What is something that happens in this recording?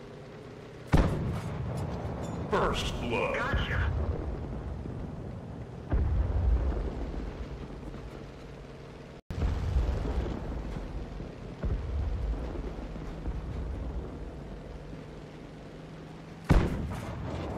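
A tank cannon fires with a loud boom.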